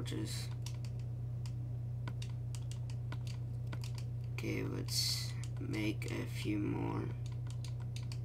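Soft menu clicks tick repeatedly as items are moved.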